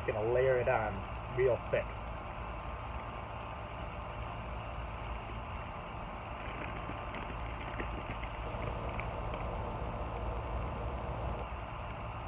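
Grass seed patters softly onto bare soil.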